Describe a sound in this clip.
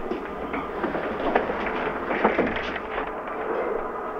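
A revolving door turns and rattles.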